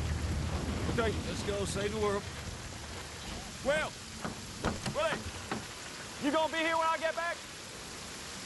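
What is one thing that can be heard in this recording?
A woman shouts loudly.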